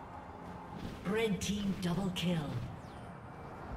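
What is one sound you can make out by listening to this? Video game spell effects whoosh and chime during a fight.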